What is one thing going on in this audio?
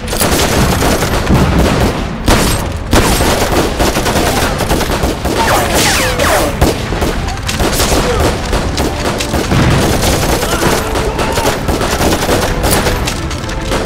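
Soldiers yell as they charge.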